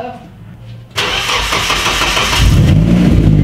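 A car's starter motor cranks the engine.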